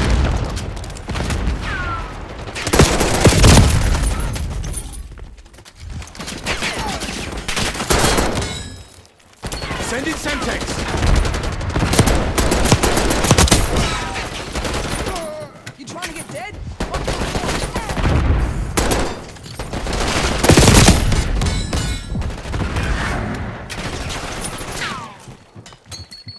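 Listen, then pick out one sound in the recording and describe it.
Rifle fire rattles in quick bursts.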